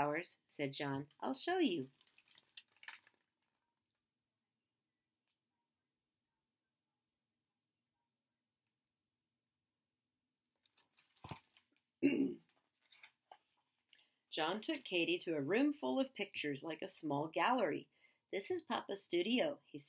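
A woman reads aloud calmly, close to a microphone.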